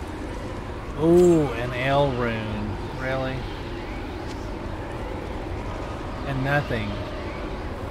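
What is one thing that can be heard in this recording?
A middle-aged man speaks casually into a close microphone.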